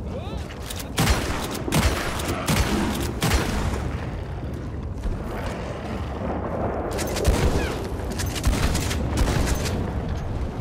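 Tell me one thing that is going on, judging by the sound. A revolver fires several sharp shots.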